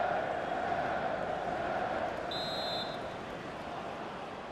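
A large stadium crowd murmurs and slowly fades.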